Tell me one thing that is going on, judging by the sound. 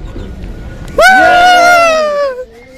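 A group of young men lets out a long, loud cheer.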